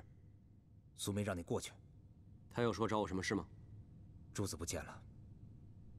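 A second man speaks in a low, firm voice, close by.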